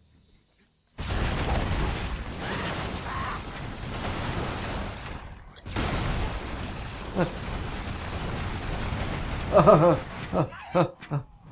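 Explosions roar and rumble.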